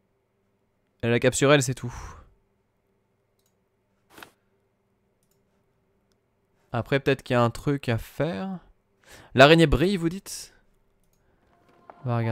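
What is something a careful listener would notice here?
A man talks with animation, close to a microphone, in short bursts.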